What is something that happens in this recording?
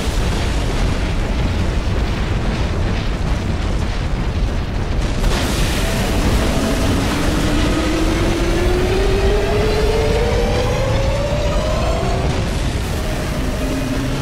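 An energy sword hums steadily.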